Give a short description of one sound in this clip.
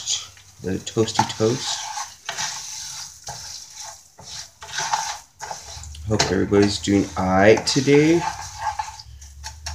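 A wooden spoon stirs and scrapes rice in a frying pan.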